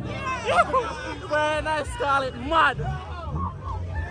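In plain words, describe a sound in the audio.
A young man talks with excitement close by.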